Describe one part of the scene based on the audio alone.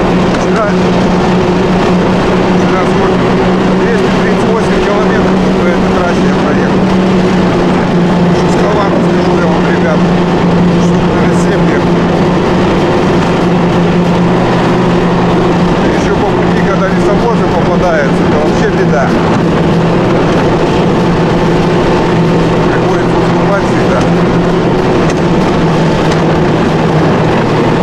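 A snowmobile engine drones steadily ahead.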